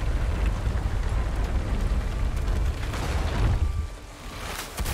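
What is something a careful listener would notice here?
A heavy wooden lift rumbles and creaks as it moves.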